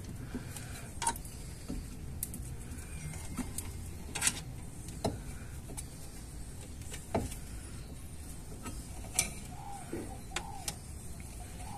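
Metal parts click and clink.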